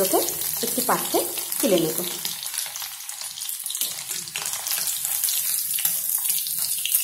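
Oil sizzles and crackles in a hot pan.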